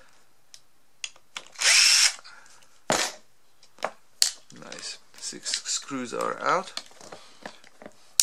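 Small plastic parts click and rattle as they are handled up close.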